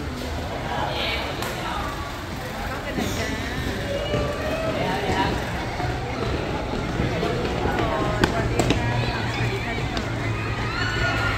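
Many footsteps shuffle on a hard floor.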